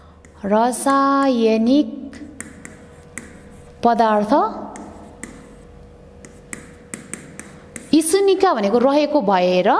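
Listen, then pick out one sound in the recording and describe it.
A woman speaks calmly and clearly, in a slow teaching voice, close to a microphone.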